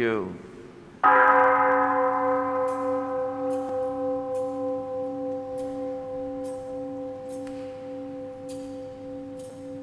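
A bell is struck once and rings on, slowly fading.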